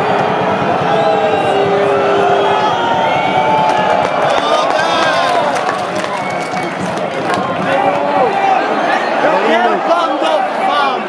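A large stadium crowd chants and sings loudly all around.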